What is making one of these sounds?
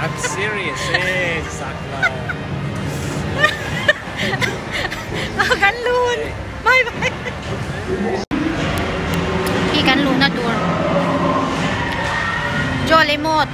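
A woman talks and laughs cheerfully close to a phone microphone.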